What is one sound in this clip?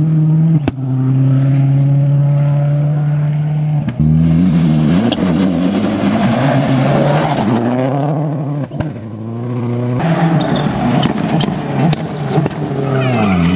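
Engine pops and bangs crackle from a rally car's exhaust.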